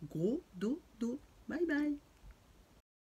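A middle-aged woman speaks expressively, close to the microphone.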